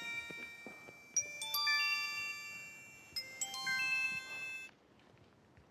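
A mobile phone gives out a quick string of electronic beeps and tones.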